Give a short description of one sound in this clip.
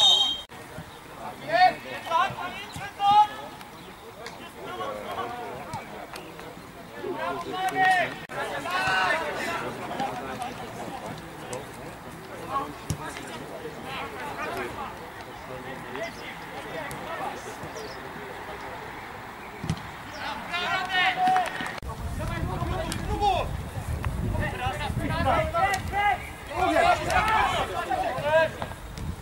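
Men shout to each other outdoors across a field.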